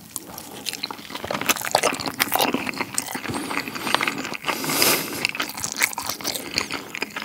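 Crispy fried food crunches between a man's teeth.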